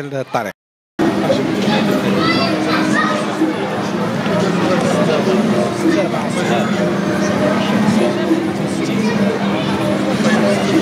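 Children and adults chatter in a busy crowd outdoors.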